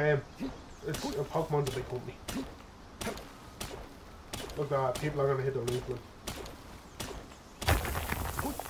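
A pickaxe strikes rock in quick repeated knocks.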